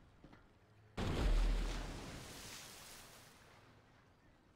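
A small submarine splashes heavily into the water.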